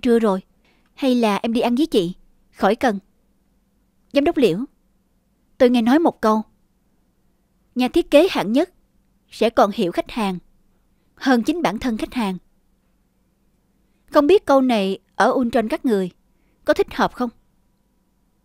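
A woman speaks firmly and coolly, close by.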